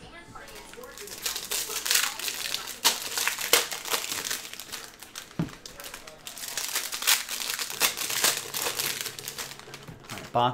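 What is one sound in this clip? Foil card wrappers rustle and crinkle as they are torn open.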